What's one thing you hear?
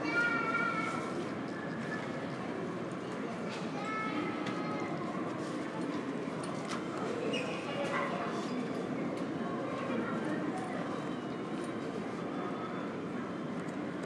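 A steady low hum fills a large echoing hall.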